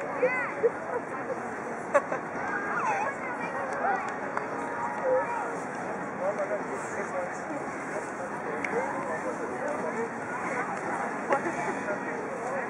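Young women talk and laugh nearby outdoors.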